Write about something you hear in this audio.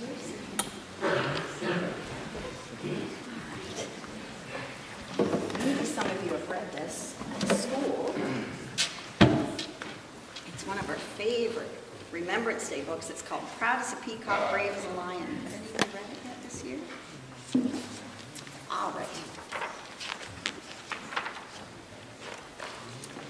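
A woman reads aloud calmly in a room with a slight echo.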